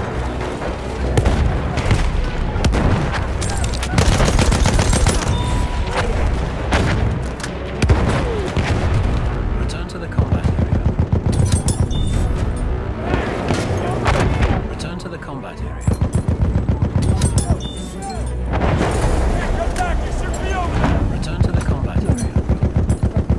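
A machine gun fires in rapid, loud bursts.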